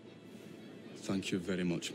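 A middle-aged man speaks calmly and formally.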